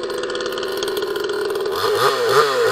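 A two-stroke chainsaw idles.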